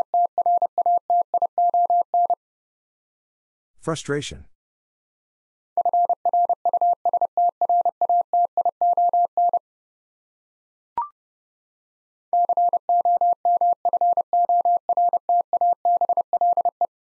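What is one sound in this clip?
A telegraph key taps out fast Morse code beeps.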